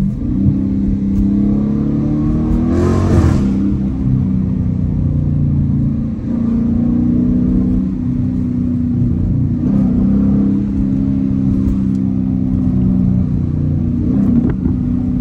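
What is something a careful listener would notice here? A V8 muscle car accelerates hard, heard from inside the cabin.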